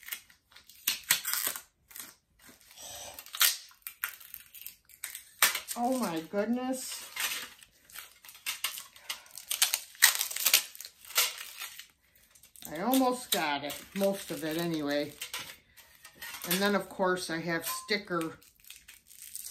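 Paper or wrapping rustles and crinkles in a person's hands.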